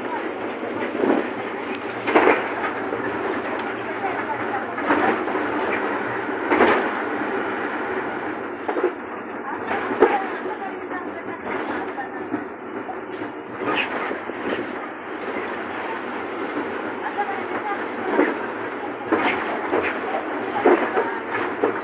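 The bus body rattles and clatters over bumps.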